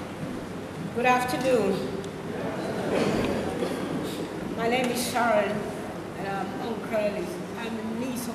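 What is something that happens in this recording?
A middle-aged woman speaks into a microphone over loudspeakers.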